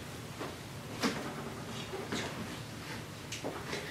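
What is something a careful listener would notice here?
A metal pot clanks on a countertop.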